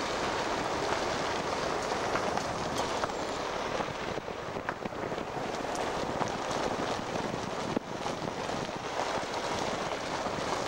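A vehicle drives steadily along a road, its tyres rumbling on the surface.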